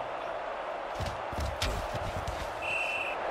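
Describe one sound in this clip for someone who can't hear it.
Football players' pads clash as they collide.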